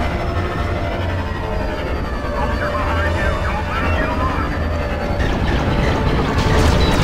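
Spaceship engines roar steadily.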